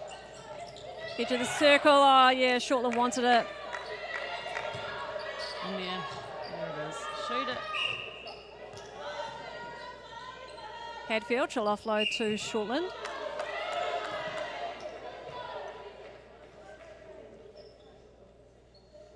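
Players' shoes squeak on the court floor.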